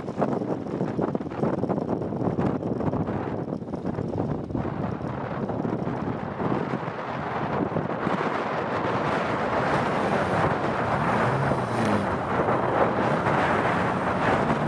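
Tyres churn and thump over bumpy earth.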